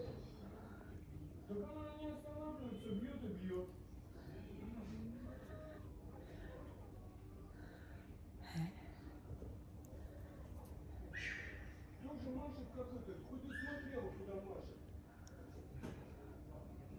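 A middle-aged woman speaks close to the microphone.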